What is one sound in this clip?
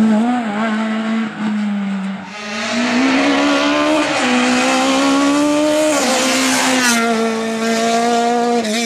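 Rally car engines race past at full throttle.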